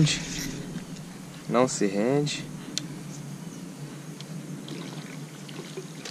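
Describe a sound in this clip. A fish splashes softly at the water's surface.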